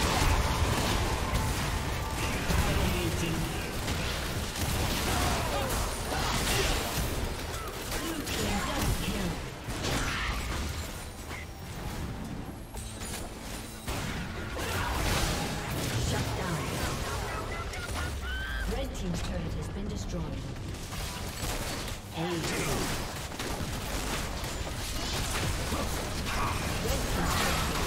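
Spell effects whoosh, crackle and explode in a fast-paced fight.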